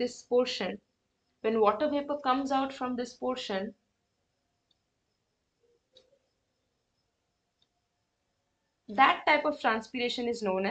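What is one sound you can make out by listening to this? A young woman speaks calmly and explains into a close microphone.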